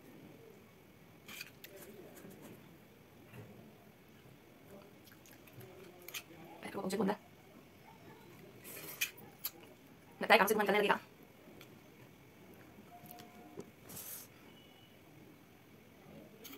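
A young woman chews and eats noisily.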